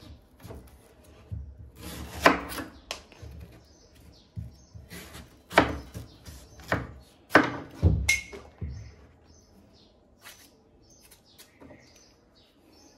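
A knife slices into a firm vegetable with crisp cuts.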